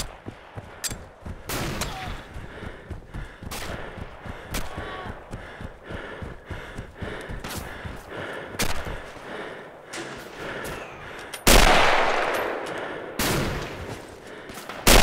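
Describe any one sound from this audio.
Gunshots crack repeatedly in the distance.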